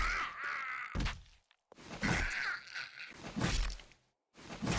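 A club thuds heavily against a body several times.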